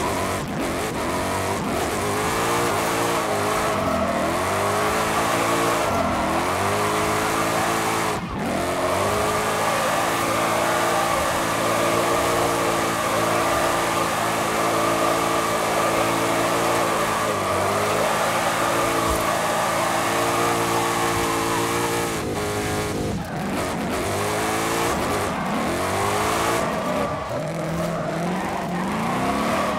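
An engine roars and revs up and down throughout.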